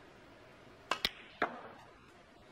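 Snooker balls clack together sharply.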